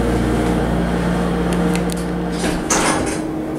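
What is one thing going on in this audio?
An elevator motor hums steadily, then stops.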